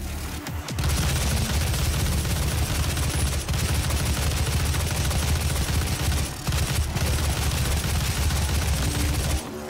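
Gunfire blasts in rapid bursts.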